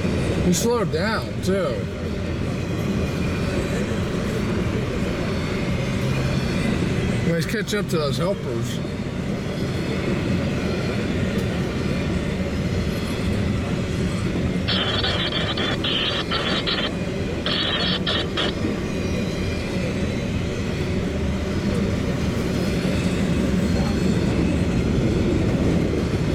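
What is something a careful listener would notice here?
A long freight train rumbles and clatters past close by.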